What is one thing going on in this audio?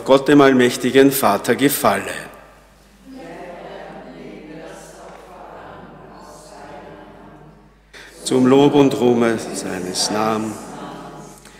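A man speaks steadily into a microphone in an echoing hall.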